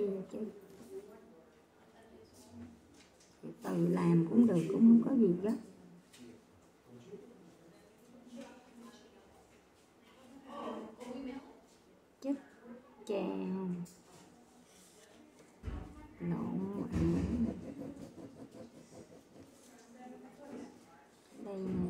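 A middle-aged woman speaks quietly and haltingly close by, sounding strained.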